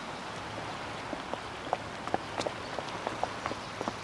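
Footsteps walk away on a paved path.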